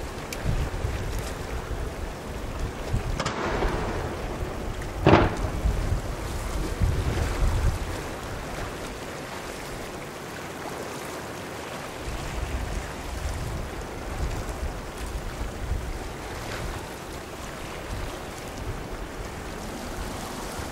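A large ship's engines hum low and steady.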